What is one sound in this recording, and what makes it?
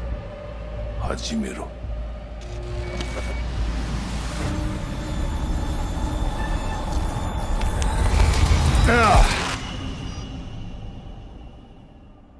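A loud distorted electronic glitch crackles and whines, then fades away.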